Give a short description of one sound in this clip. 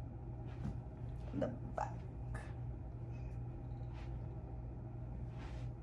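Fabric rustles softly.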